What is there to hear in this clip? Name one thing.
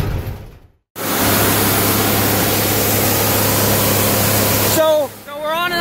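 Shelled corn pours into a hopper with a rushing hiss.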